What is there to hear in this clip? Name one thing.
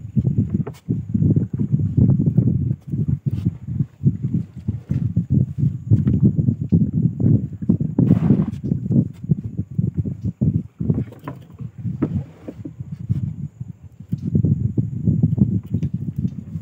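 A wooden pole splashes and knocks against a boat.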